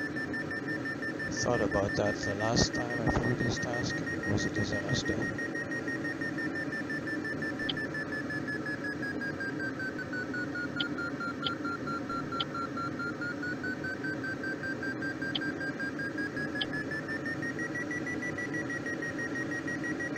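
Wind rushes steadily past a glider's cockpit.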